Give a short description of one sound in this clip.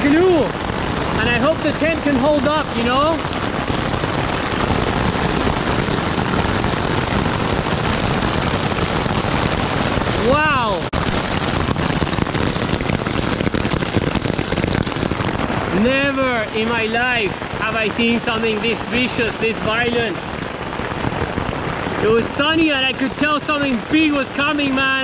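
A man talks calmly close to the microphone.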